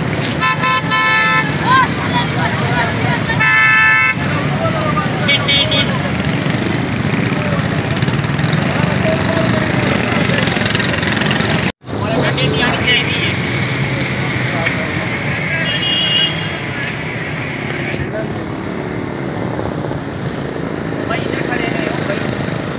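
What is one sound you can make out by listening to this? Motorcycle engines hum as bikes ride past.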